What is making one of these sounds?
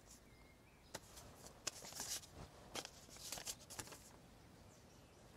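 Paper rustles as it is unfolded.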